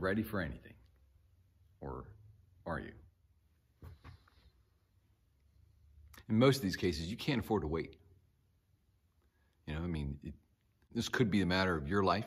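A middle-aged man speaks calmly and close by, with pauses, in a room with a slight echo.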